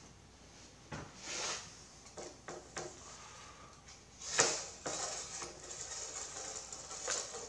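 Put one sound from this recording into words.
A metal tool scrapes and taps against glass.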